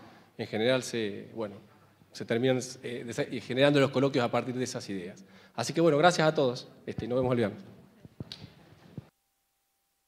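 A man speaks clearly to an audience.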